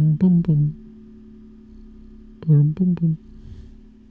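A young man speaks briefly into a close microphone in short bursts.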